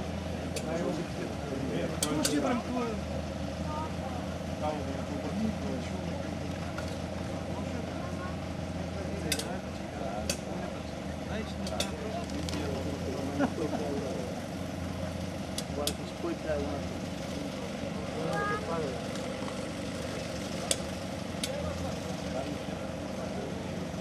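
Outdoors, a crowd of spectators chatters nearby.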